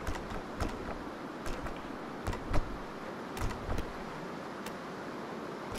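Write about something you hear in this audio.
Interface buttons click sharply several times.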